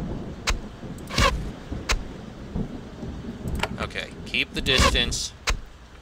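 A magic spell crackles and shimmers.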